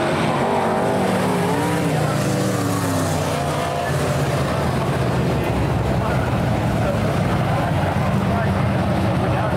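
Several race car engines drone together in a low, steady rumble.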